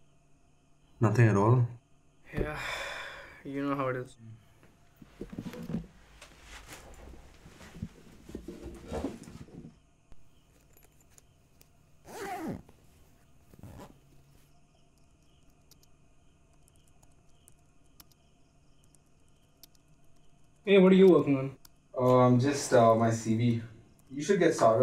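A second young man asks a question and speaks calmly, close by.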